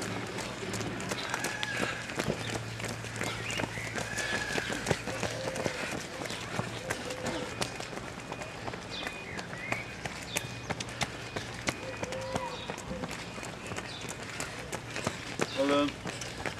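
Light rain falls outdoors.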